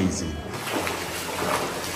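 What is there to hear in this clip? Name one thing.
Feet splash and slosh through shallow water.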